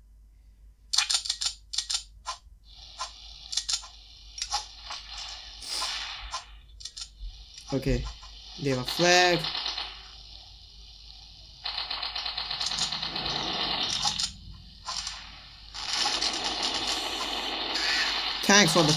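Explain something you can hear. Video game gunfire crackles in quick bursts.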